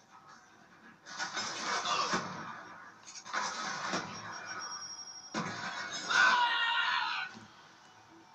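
Loud explosions boom from a video game.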